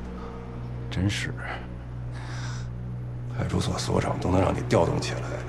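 A young man speaks close by in a low, menacing voice.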